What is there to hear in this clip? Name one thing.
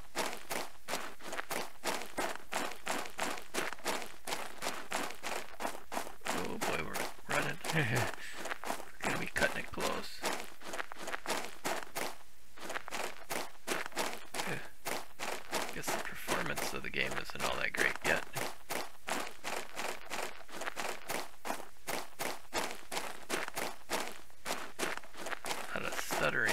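Footsteps crunch steadily over rocky ground.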